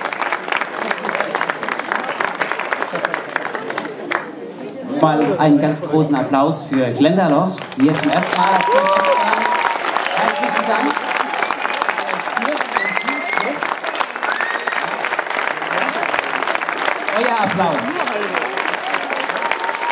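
A crowd applauds and cheers outdoors.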